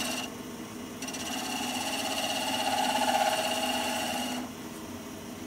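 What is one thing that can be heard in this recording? A chisel scrapes loudly against spinning wood.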